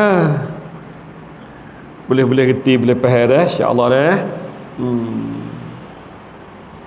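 A middle-aged man chants melodiously into a microphone in a reverberant room.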